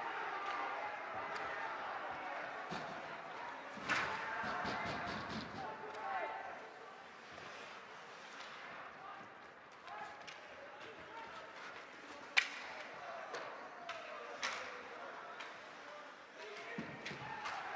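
A crowd murmurs and cheers in an echoing rink.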